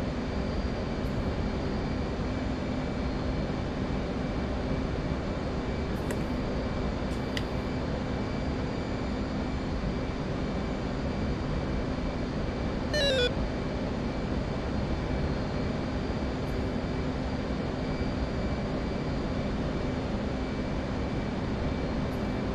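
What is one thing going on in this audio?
A jet engine drones steadily inside a cockpit.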